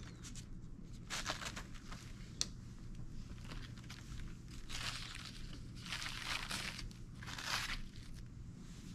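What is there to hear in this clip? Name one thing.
Paper sheets rustle as they are handled and unfolded.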